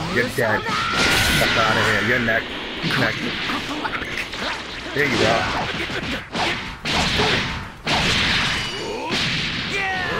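Energy blasts roar and crackle.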